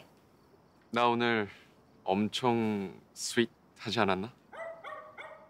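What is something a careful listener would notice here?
A young man speaks calmly and warmly, close by.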